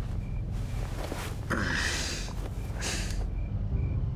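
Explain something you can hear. A woman speaks calmly and close.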